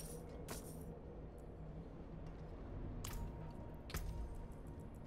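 Game menu sounds click and chime.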